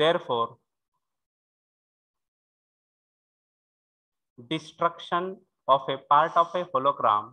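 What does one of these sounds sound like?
A man lectures calmly over a microphone in an online call.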